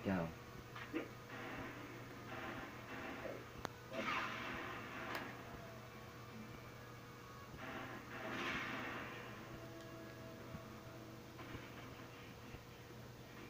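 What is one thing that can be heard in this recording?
Video game gunfire and effects play through a television speaker in a small room.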